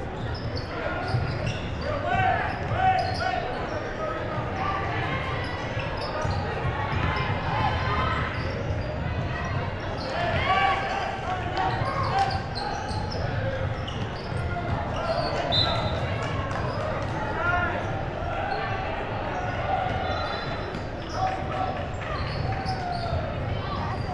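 A crowd of spectators chatters and calls out throughout a large echoing gym.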